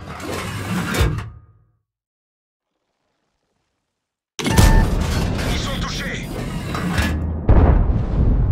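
A tank cannon fires with a loud, heavy boom.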